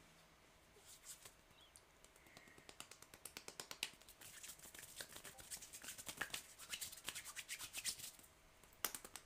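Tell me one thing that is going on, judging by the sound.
A man's hands rub and rustle close to a microphone.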